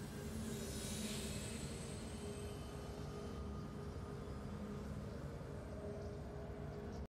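A triumphant victory fanfare rings out with sustained tones.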